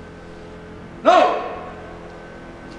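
A man shouts a short command through a loudspeaker outdoors.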